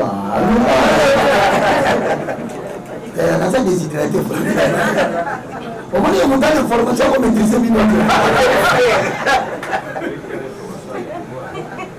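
Men laugh loudly.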